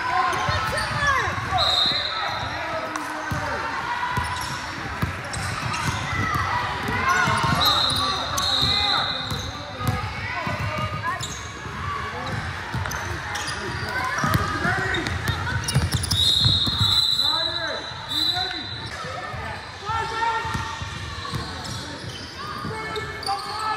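Girls shout and call out to each other in a large echoing gym.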